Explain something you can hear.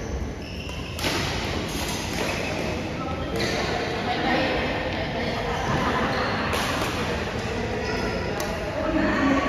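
Badminton rackets smack a shuttlecock in a large echoing hall.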